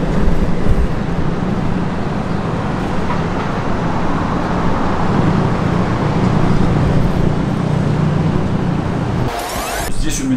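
City traffic hums steadily far below.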